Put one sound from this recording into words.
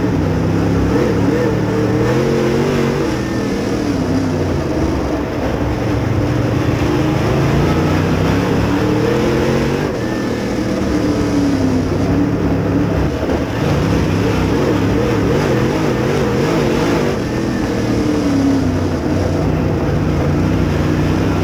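A dirt late model race car's V8 engine roars at full throttle from inside the cockpit, rising and falling through the turns.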